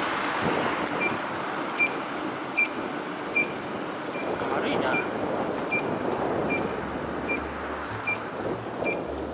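A scooter's turn signal beeps at a steady, even pace.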